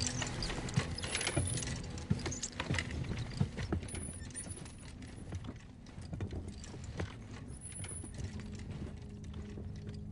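A wheeled stretcher rattles as it rolls along a hard floor.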